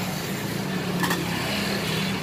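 A metal lid clinks onto a pot.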